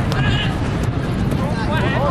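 A crowd of young spectators shouts and cheers close by, outdoors.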